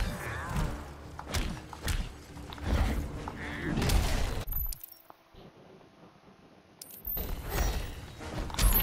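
Large beasts grunt and roar as they fight.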